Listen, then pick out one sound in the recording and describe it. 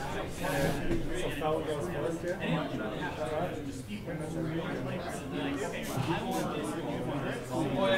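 Young men talk casually with each other close by.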